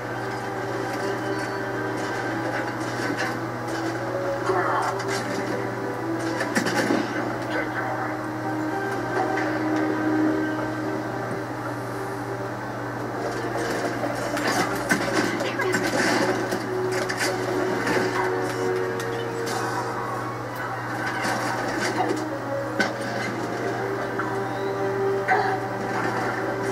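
Gunfire from a video game crackles in short bursts through a television speaker.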